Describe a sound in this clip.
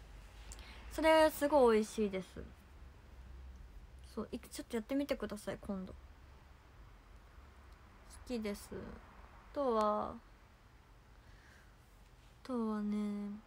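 A young woman talks softly and casually into a nearby microphone.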